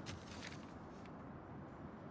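A sheet of paper rustles in a hand.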